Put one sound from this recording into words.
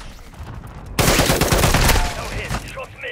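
An explosion booms loudly nearby.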